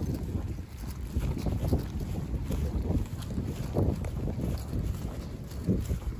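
Footsteps crunch on grass as someone walks.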